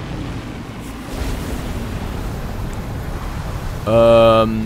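A creature breathes a roaring blast of fire.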